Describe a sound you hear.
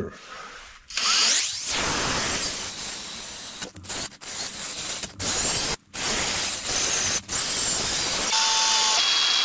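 A power drill whirs steadily as it bores into metal.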